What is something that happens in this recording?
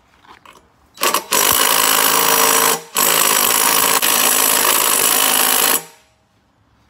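A power drill whirs loudly and steadily.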